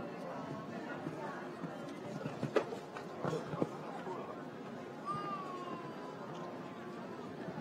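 Hooves thud on soft sand as a horse canters.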